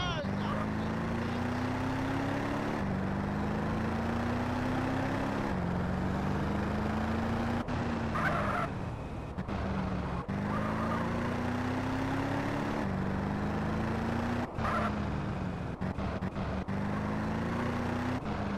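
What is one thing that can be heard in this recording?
A car engine revs up and shifts gears repeatedly as the car speeds along.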